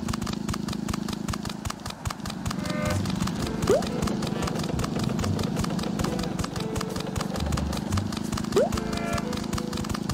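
Quick cartoon footsteps patter along steadily.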